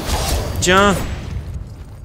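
Flames burst with a whoosh.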